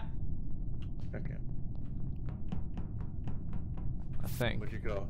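Soft footsteps patter quickly in a video game.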